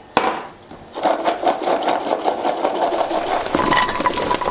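Edamame pods rattle in a plastic colander.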